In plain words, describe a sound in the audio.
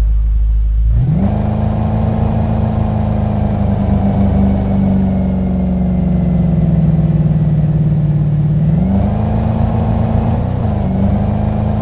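A car engine hums steadily while driving, its pitch rising and falling slightly.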